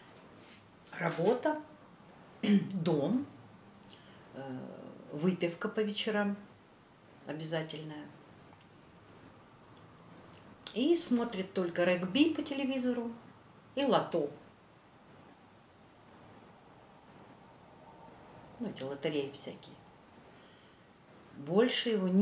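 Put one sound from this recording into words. An older woman speaks calmly in short bursts with pauses, close by.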